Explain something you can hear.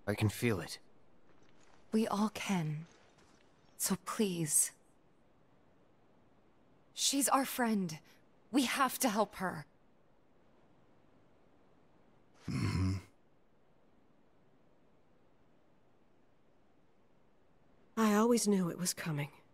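A young woman speaks calmly in short lines, close by.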